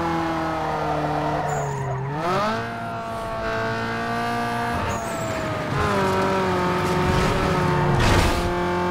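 A car engine roars at high revs, rising and falling as gears shift.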